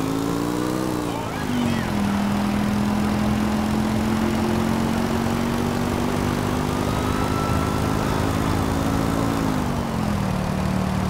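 A motorcycle engine roars steadily, its pitch shifting as it changes gear.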